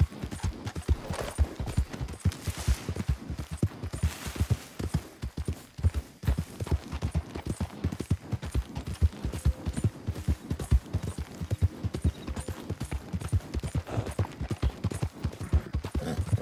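Hooves pound rapidly on soft ground as a horse gallops.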